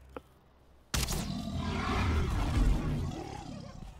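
A large beast growls and roars deeply.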